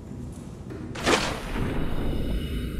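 Water splashes loudly as something plunges into it.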